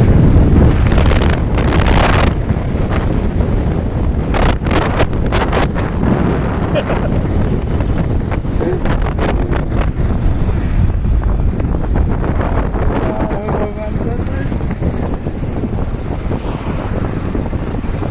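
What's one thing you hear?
A motorbike engine hums steadily while riding along the road.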